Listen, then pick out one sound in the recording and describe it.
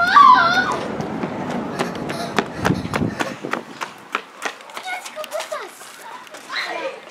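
Shoes tap and scuff on concrete.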